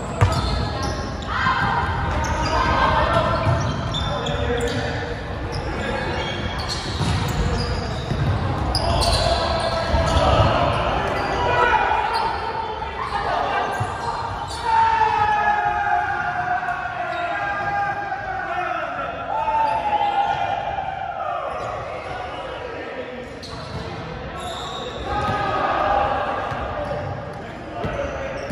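Young men call out and chatter in a large echoing gym.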